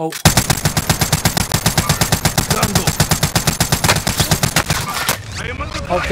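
A rifle fires in a fast, steady burst of loud shots.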